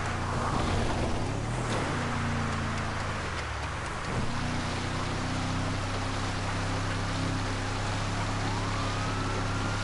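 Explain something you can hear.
A car engine rumbles steadily as the vehicle drives along.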